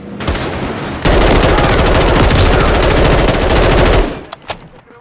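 A rifle fires in a rapid, loud burst.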